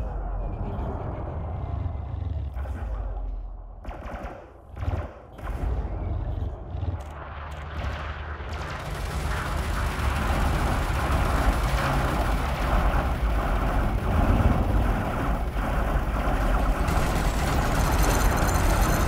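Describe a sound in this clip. A spaceship engine rumbles low and steadily, growing louder.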